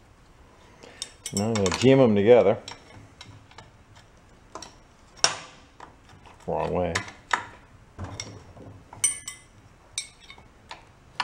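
A metal wrench clinks and scrapes against metal.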